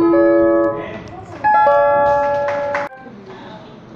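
A guitar plays notes through loudspeakers in a large hall.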